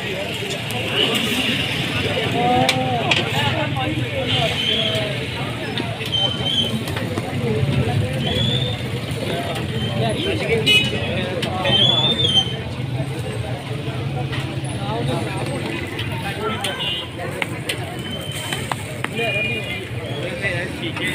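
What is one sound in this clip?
Batter sizzles steadily on a hot griddle.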